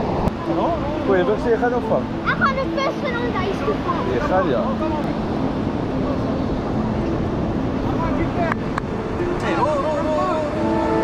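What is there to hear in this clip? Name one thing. A young boy speaks excitedly nearby.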